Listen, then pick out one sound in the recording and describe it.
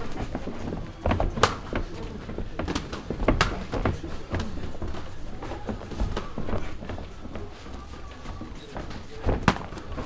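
Punches and kicks thud sharply against pads.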